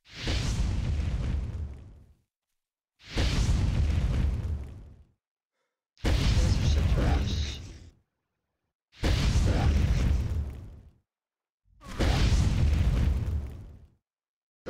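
Heavy weapon blasts roar in repeated bursts of about two seconds each.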